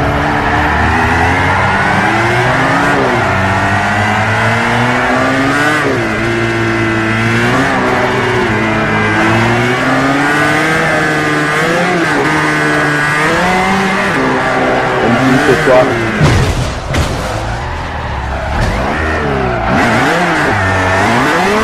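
A four-cylinder sports car engine revs up and down hard while drifting.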